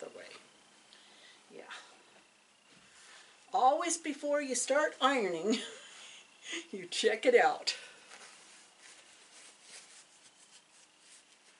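Fabric rustles as a large cloth is shaken out.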